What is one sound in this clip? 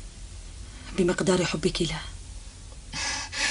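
A woman speaks with emotion.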